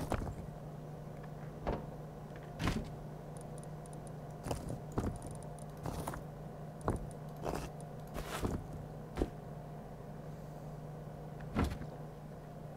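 Short clicks and thuds sound as items are moved around.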